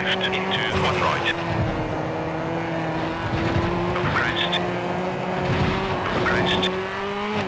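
A man talks casually through a microphone, close by.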